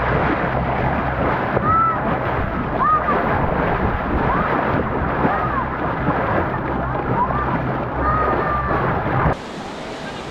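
A boat engine drones steadily.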